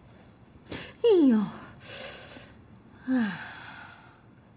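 A middle-aged woman groans in pain, close by.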